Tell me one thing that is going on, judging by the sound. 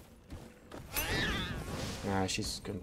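A fiery blast bursts with a whoosh.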